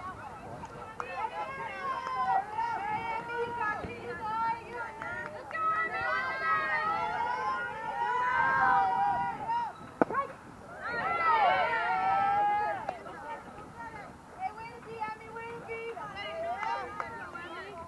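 Young women cheer and chant loudly outdoors.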